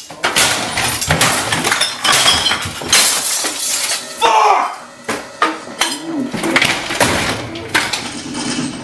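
Loud bangs and crashes ring out as things are struck and thrown.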